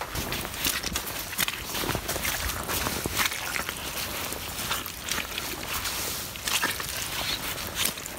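Boots squelch and crunch through wet soil.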